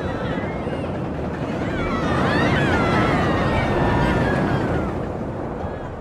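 Roller coaster wheels screech on the rails.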